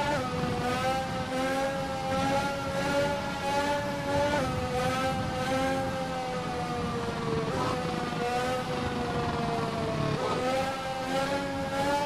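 A racing car engine screams at high revs, its pitch sliding down and jumping up at each gear change.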